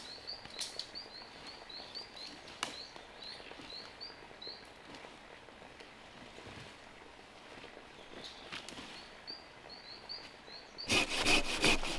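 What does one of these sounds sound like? A blade chops into a fallen tree trunk with sharp knocks.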